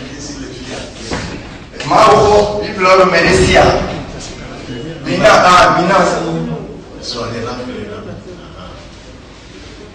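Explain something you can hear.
A man speaks loudly with animation into a microphone through loudspeakers.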